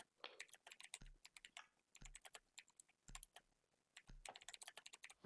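A countdown timer ticks once each second.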